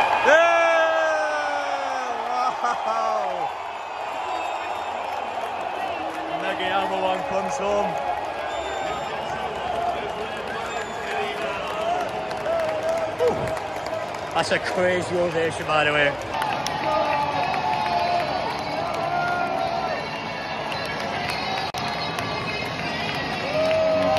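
A crowd cheers and roars.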